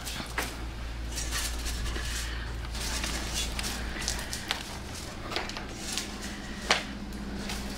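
Water splashes in quick bursts as it is sprinkled around a room.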